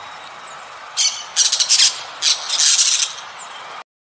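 Parrots screech in short, harsh bursts.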